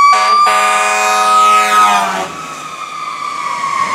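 Tyres hiss on a wet road as a fire engine passes close by.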